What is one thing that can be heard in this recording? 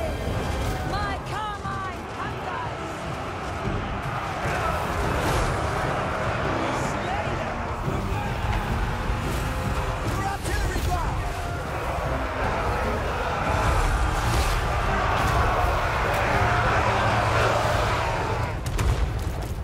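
Weapons clash and clang in a large battle.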